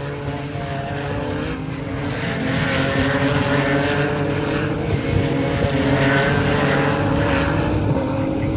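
Racing car engines roar loudly as the cars speed past.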